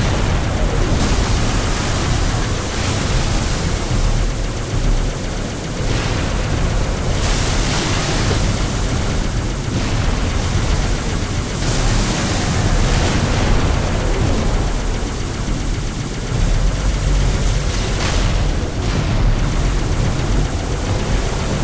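A hovering vehicle's engine hums and whines steadily.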